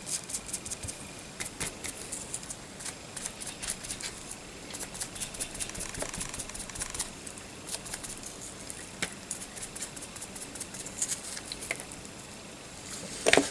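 A sponge dabs and scratches lightly against a small figure, again and again.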